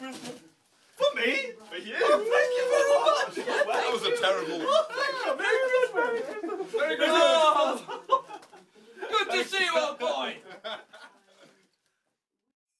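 Several young men sing and shout together with animation, close by.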